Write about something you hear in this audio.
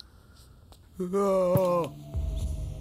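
A man cries out in alarm close by.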